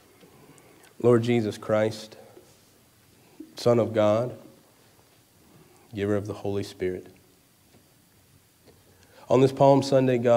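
A man speaks slowly and calmly into a microphone, in short phrases with pauses.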